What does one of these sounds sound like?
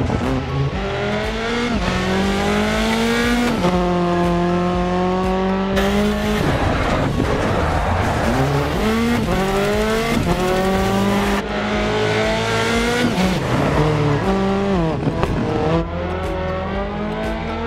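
A rally car engine revs hard and shifts through the gears.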